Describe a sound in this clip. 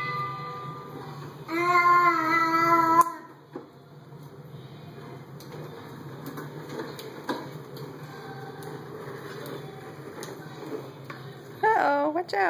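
Plastic toy wheels roll over a tiled floor.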